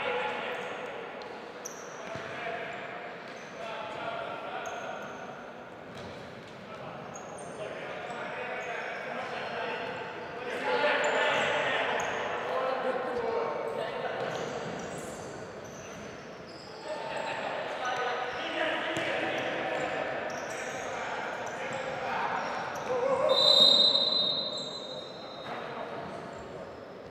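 Men shout to each other across a large echoing hall.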